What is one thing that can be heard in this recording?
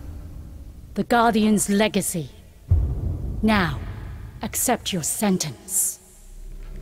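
A woman speaks slowly and solemnly, close and clear.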